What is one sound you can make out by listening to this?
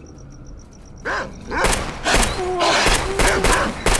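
A man talks loudly and excitedly into a microphone.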